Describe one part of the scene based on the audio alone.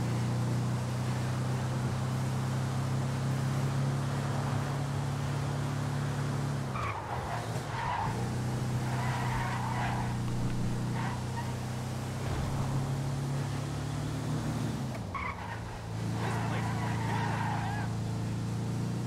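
A heavy truck engine drones steadily.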